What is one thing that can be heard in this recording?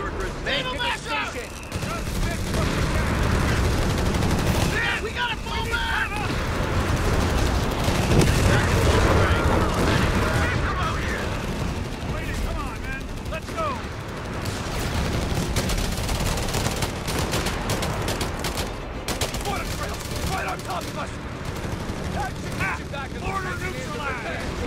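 Gunfire and explosions rumble across a battlefield.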